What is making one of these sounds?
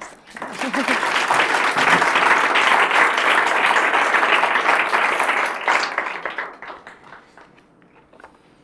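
An audience applauds loudly in a room, then the clapping fades away.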